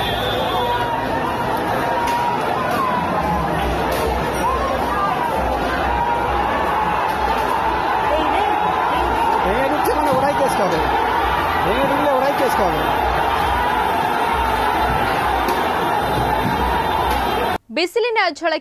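A crowd shouts and clamours in a street.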